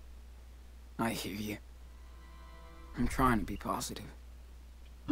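A young man speaks quietly and hesitantly.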